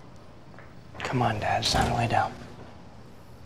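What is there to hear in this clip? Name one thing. A young man speaks softly and emotionally, close by.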